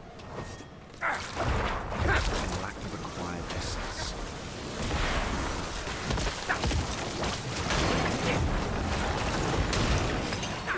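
Game combat sounds clash and crackle with magic blasts.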